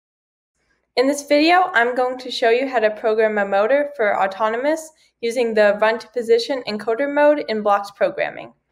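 A young girl speaks calmly and clearly into a microphone.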